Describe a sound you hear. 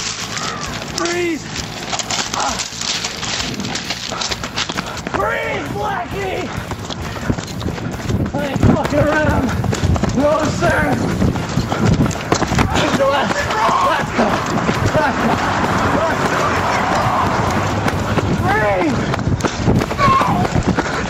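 A young man laughs and shouts loudly nearby.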